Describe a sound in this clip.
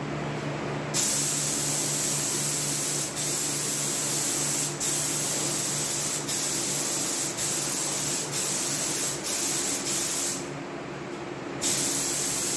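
A spray gun hisses loudly in short bursts.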